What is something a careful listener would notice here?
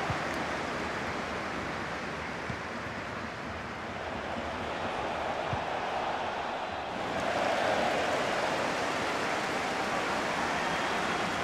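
A large crowd cheers and murmurs steadily, swelling louder partway through.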